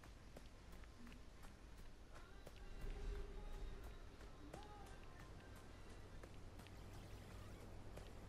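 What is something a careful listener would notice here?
Light footsteps patter quickly over grass and dirt.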